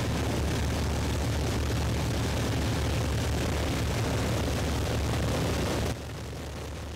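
Propeller engines roar steadily close by.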